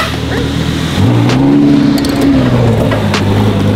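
A sports car engine rumbles and revs.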